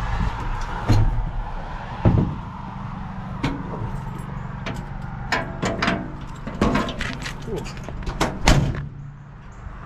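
A truck engine runs with a steady low rumble.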